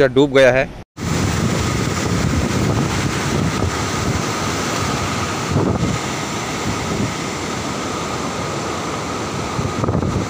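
Floodwater rushes and roars loudly.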